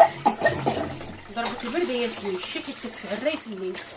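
Water splashes in a sink.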